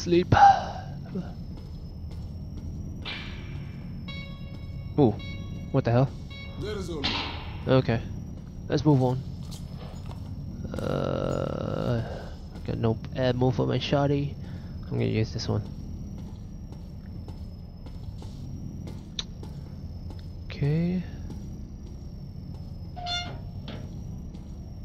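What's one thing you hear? Footsteps clang on a metal walkway.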